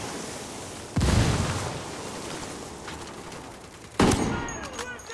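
Rifle shots crack loudly.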